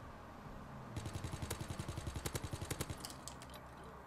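A submachine gun fires a rapid burst.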